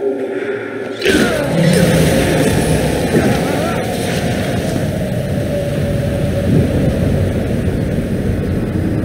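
A powerful energy blast erupts with a deep roar.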